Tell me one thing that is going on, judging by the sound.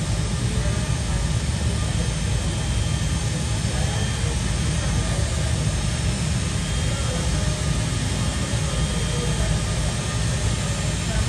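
A jet airliner's engines whine and rumble as it taxis slowly nearby.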